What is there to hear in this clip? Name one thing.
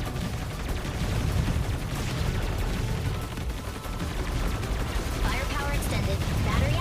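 Rapid game blasts and explosions crackle constantly.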